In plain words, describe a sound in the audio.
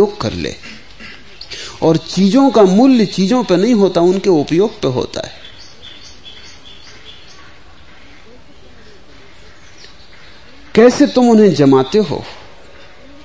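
An elderly man speaks slowly and calmly, close to a microphone.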